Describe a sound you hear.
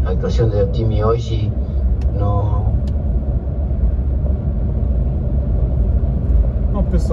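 A car's engine and tyres rumble steadily on a highway.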